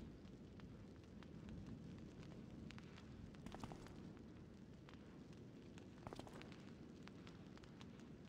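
A magic spell crackles and hisses.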